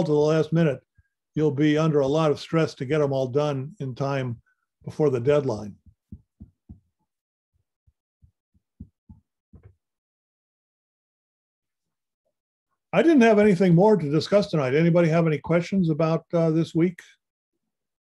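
A man speaks calmly over an online call, explaining in pauses.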